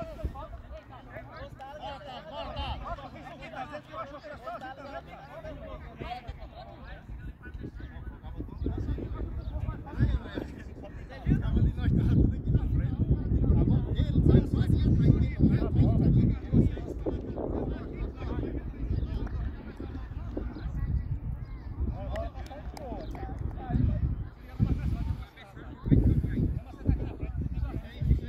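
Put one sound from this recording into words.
Young men call out to each other at a distance across an open field.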